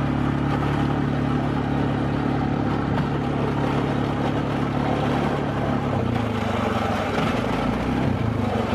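A quad bike engine hums steadily up close, its pitch shifting slightly near the end.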